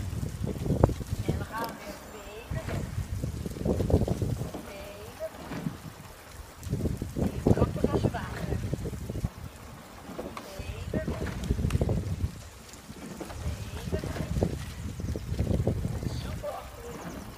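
Oars dip and splash rhythmically in water.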